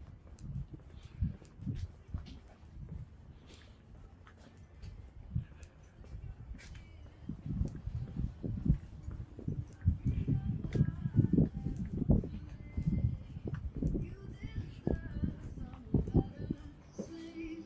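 Footsteps walk steadily on a concrete path outdoors.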